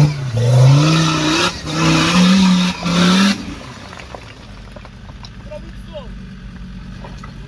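Tyres spin and spray loose stones and gravel.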